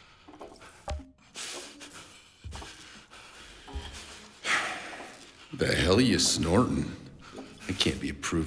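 A man speaks in a low, gruff voice close by.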